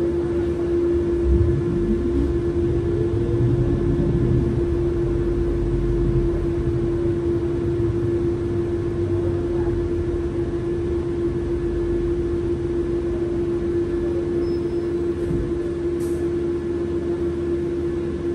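A bus rumbles over the road.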